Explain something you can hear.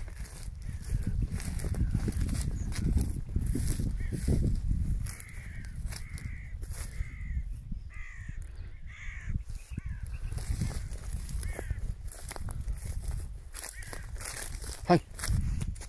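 A dog rustles through dry grass.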